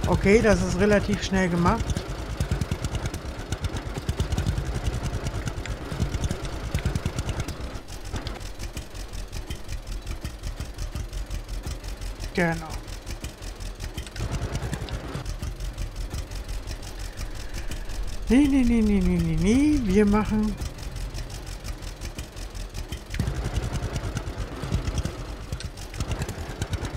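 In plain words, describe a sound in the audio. A tractor engine chugs steadily with a rapid putter.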